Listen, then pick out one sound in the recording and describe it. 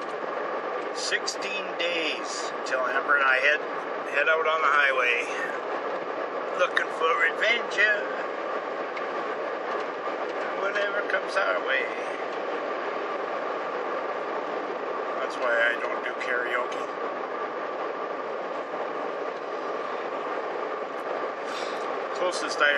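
An elderly man speaks in short bursts, close by.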